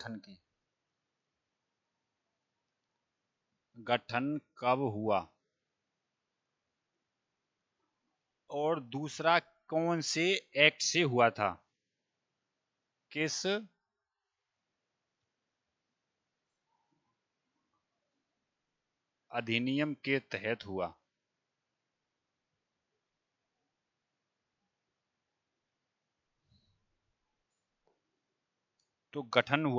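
A man speaks calmly into a headset microphone, in short bursts with long pauses.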